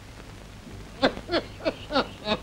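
A young woman calls out nearby.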